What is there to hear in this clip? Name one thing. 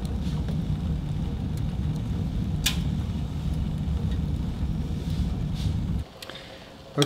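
A fire roars and rumbles steadily.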